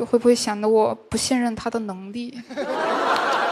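A young woman speaks hesitantly into a microphone.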